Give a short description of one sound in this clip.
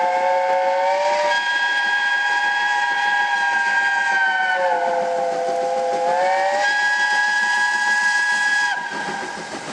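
A steam locomotive's whistle blows long, chiming blasts.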